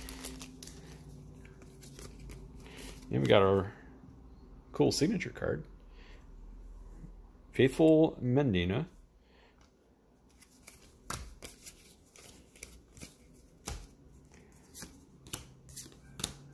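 Playing cards slide and flick against each other in the hands.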